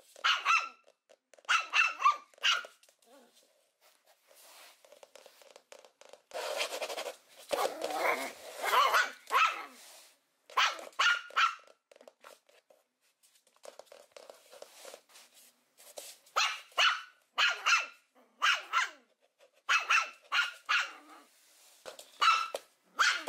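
A puppy yaps in short, high barks, close by.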